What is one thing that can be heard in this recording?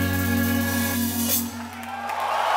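A keyboard plays a sustained chord through loudspeakers.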